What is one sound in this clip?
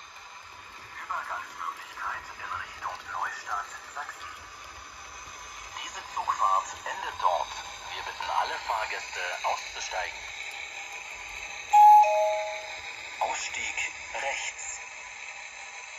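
Model train wheels click and clatter over the rail joints.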